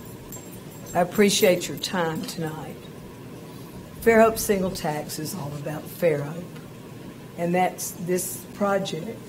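An older woman speaks into a microphone with animation.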